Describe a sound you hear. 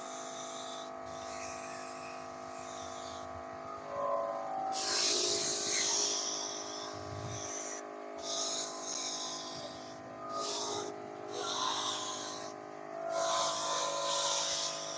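A spray gun hisses in short bursts.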